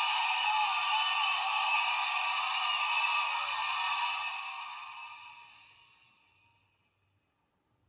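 A large crowd cheers and applauds loudly, then fades away.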